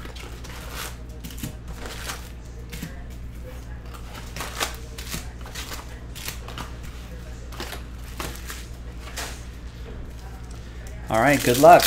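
Foil card packs crinkle and tap as they are stacked.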